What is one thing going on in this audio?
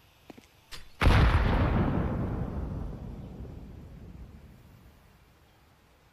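A grenade explodes with a loud boom.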